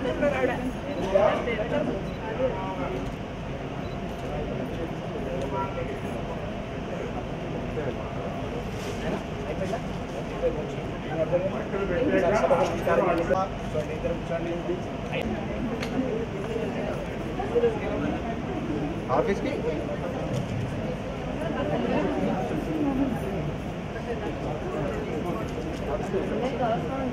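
A crowd of men and women chatter and murmur nearby.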